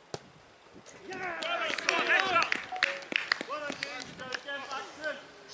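Young men shout and cheer outdoors at a distance.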